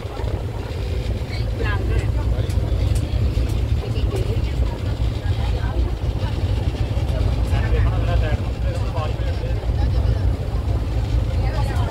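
Water splashes and rushes along a moving boat's hull.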